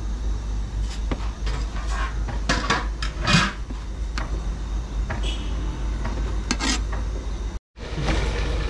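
A spoon scrapes and knocks against a pot while stirring thick batter.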